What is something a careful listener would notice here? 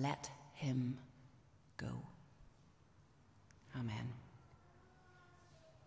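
A woman speaks calmly through a microphone in an echoing room.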